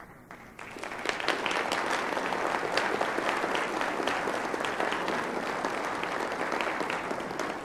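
A man claps his hands in a large echoing hall.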